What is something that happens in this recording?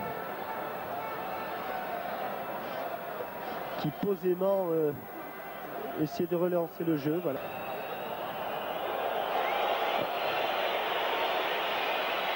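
A large stadium crowd roars and murmurs steadily outdoors.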